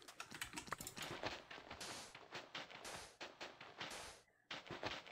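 Sand blocks are dug out with soft crunching thuds.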